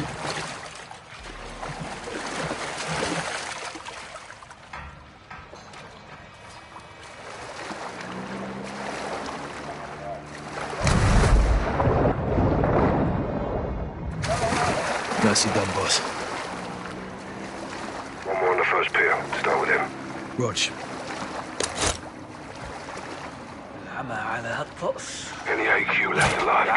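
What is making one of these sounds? Water splashes and laps as a swimmer moves through it.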